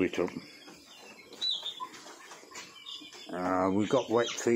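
Chickens cluck softly close by.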